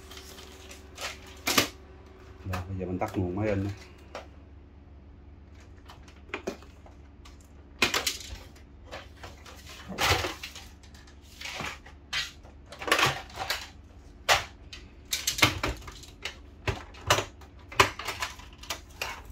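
Plastic panels click and knock as they are opened and shut.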